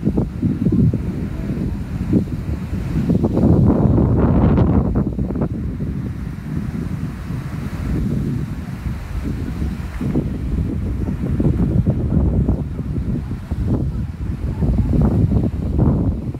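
Waves wash and splash over the rocks.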